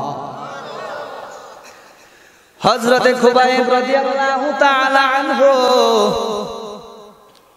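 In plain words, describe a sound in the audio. A man chants in a long, sustained melodic voice through a microphone.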